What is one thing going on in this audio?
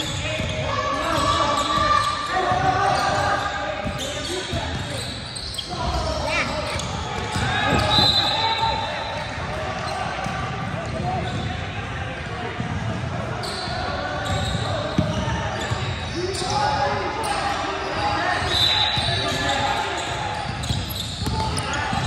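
A basketball bounces on the hardwood floor.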